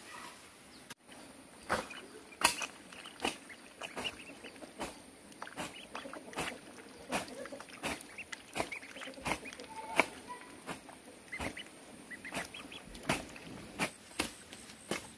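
Ducklings peep softly.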